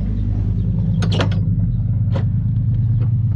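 A wooden door clicks and creaks open.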